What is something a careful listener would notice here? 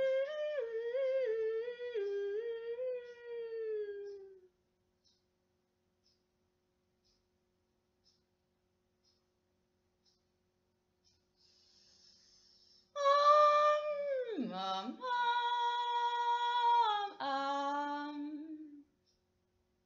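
A young woman sings a slow wordless melody close by, with pauses.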